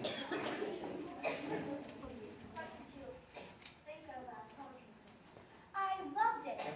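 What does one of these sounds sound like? Children speak their lines in a large echoing hall.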